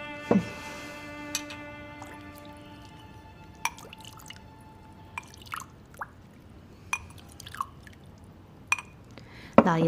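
Porcelain bowls clink softly.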